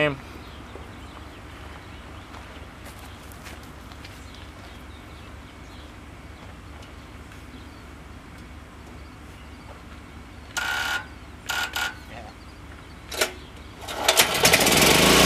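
A generator engine hums steadily nearby.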